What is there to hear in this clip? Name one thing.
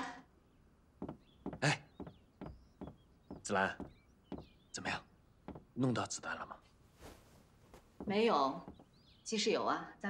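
A young man speaks with surprise, close by.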